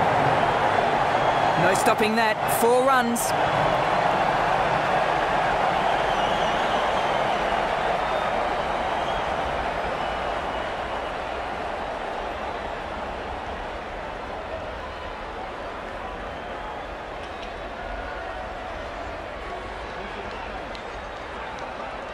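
A large crowd cheers and roars steadily, slowly fading.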